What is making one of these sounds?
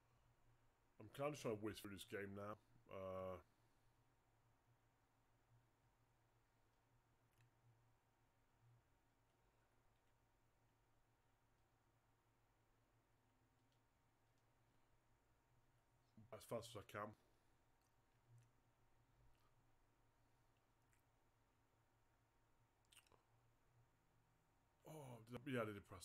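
A man talks casually into a close microphone in short bursts.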